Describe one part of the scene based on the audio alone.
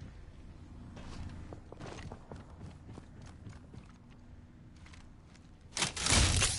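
Footsteps run across a metal floor.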